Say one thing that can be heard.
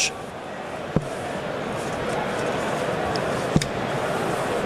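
Darts thud sharply into a dartboard, one at a time.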